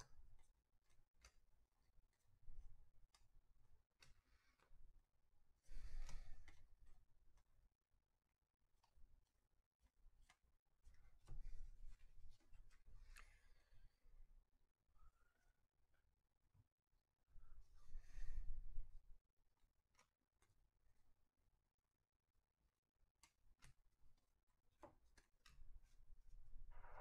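Trading cards slide and flick against each other as they are sorted by hand.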